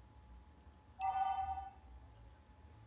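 A short electronic chime rings out.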